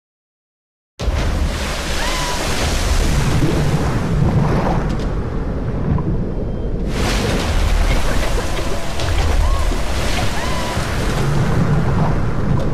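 Stormy waves crash and roar loudly.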